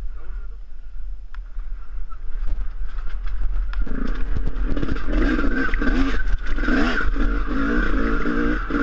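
A motorbike engine hums steadily and revs.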